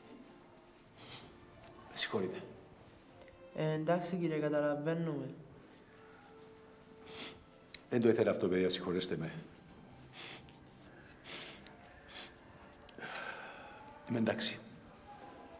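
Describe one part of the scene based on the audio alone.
A middle-aged man sniffs.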